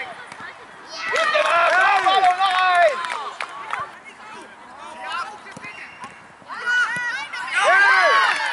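Young boys shout and cheer excitedly outdoors.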